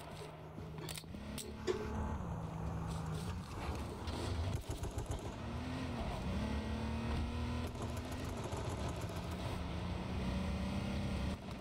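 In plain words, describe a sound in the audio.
A car engine roars and revs as a car drives over rough ground.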